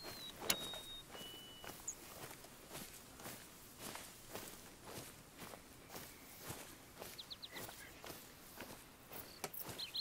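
Footsteps swish steadily through grass.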